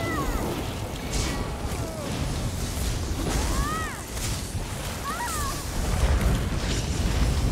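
Electric magic crackles and bursts in rapid blasts.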